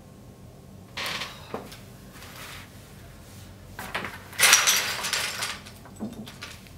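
Small plastic toys clatter on a table.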